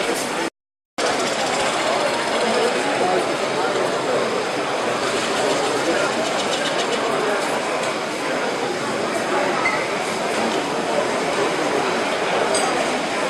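A chisel scrapes and shaves spinning wood on a lathe.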